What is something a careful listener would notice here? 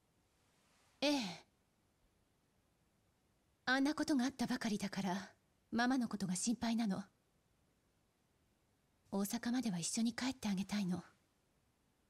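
A young woman speaks softly and sadly, close by.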